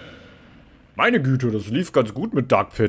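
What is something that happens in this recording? A man talks loudly and with animation close to a microphone.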